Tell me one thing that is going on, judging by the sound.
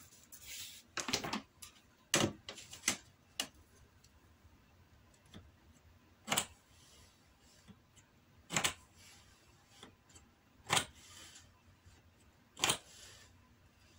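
A blade scores a surface in short, sharp strokes.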